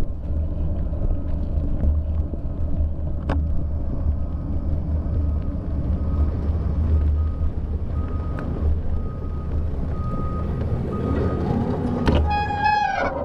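A vehicle engine rumbles low while driving.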